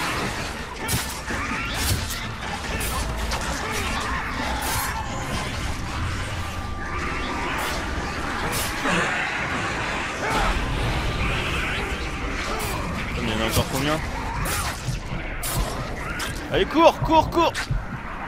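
Swords slash and strike with sharp metallic hits.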